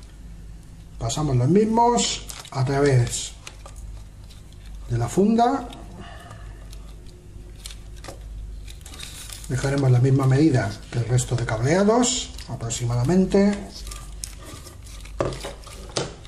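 Small plastic parts click and rattle as they are handled close by.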